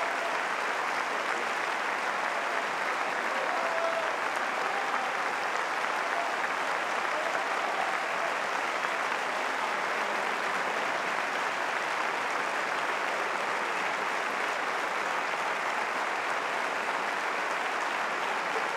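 A large audience applauds steadily in an echoing concert hall.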